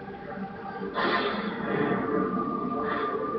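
A loud blast and rumbling explosion sound from a television speaker.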